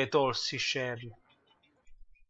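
A young man speaks briefly and with animation, close to a microphone.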